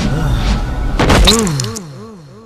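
A man lands on sand with a heavy thud.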